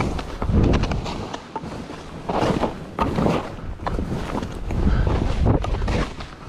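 Skis hiss and crunch through soft snow in bursts.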